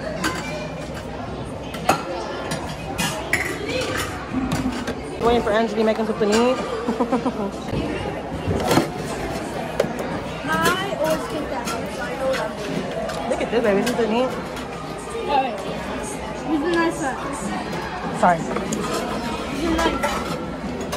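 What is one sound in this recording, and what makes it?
A crowd murmurs in the background of a busy indoor space.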